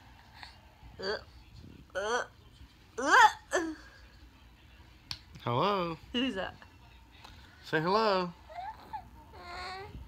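A baby coos and squeals up close.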